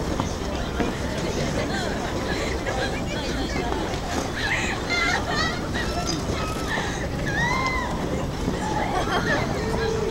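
Ice skates scrape and glide across ice.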